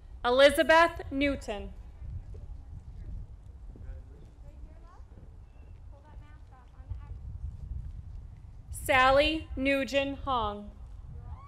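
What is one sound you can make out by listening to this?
A woman reads out names through a loudspeaker outdoors.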